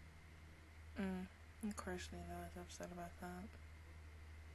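A young woman speaks briefly, close to a microphone.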